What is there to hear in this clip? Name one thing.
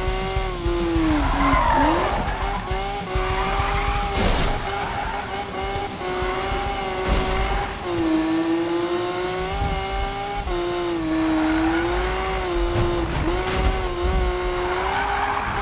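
Tyres screech while the car drifts.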